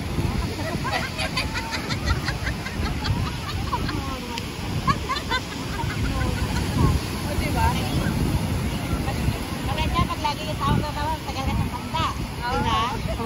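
Children shout and squeal playfully nearby in the water.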